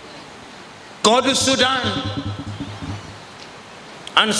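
A man speaks forcefully into a microphone over a loudspeaker in a large echoing hall.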